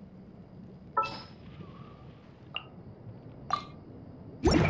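Short electronic chimes ring.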